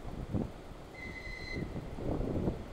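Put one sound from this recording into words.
A train horn sounds briefly in the distance.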